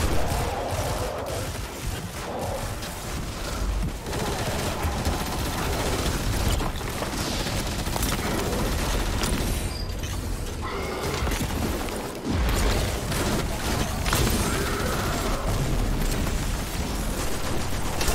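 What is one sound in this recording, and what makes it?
Guns fire in rapid bursts with sharp blasts.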